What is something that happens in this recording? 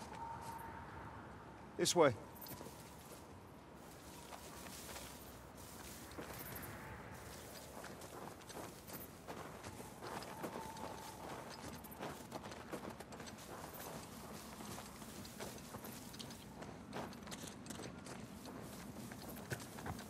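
Tall dry grass rustles as someone pushes through it.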